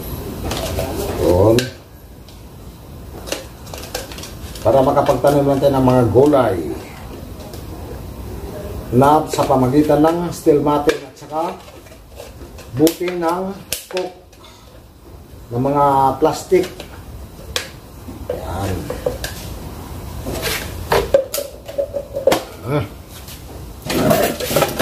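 A man talks calmly close by, in short bursts.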